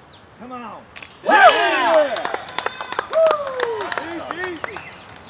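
A flying disc clanks into the metal chains of a basket, which rattle and ring.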